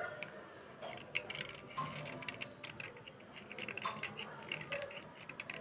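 A brush scrubs quickly against a wooden stick.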